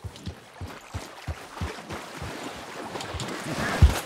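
Hooves splash through shallow water.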